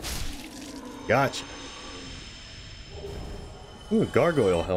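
A magical blast bursts with a loud rushing hiss.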